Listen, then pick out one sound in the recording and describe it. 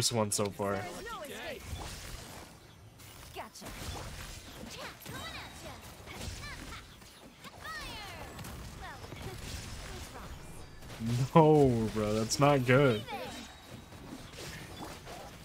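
Electric magic crackles and zaps in a fight.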